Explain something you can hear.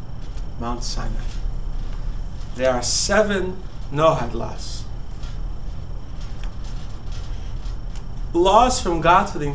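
A man speaks calmly in short bursts, close by.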